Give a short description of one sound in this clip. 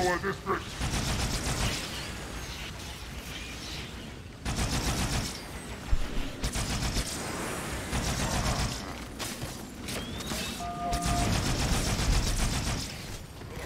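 Small explosions burst and crackle.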